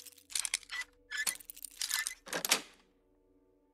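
Small metal pins click and scrape inside a lock.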